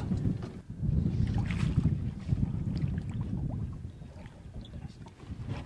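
Water splashes around a landing net.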